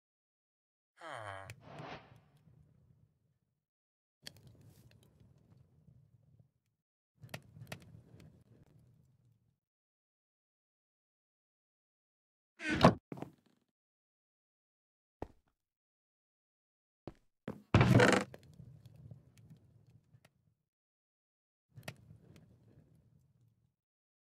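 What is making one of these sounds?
A wooden chest lid creaks open and thuds shut several times.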